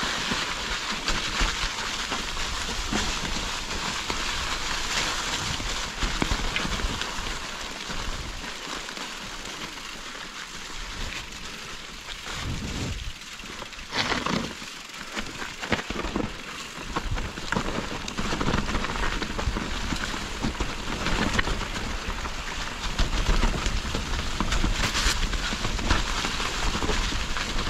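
Bicycle tyres roll and crunch over leaves on a bumpy trail.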